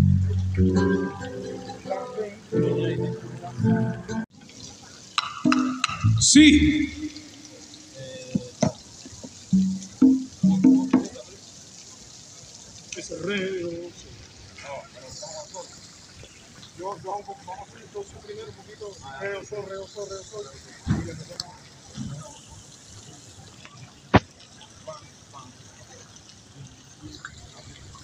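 A band plays electric guitars outdoors.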